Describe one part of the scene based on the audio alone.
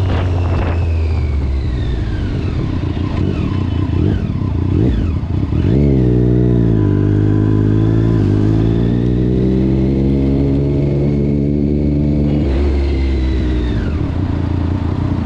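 A motorcycle engine hums and revs up and down while riding.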